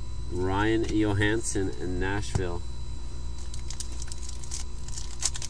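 Trading cards rustle and click softly as hands sort through them.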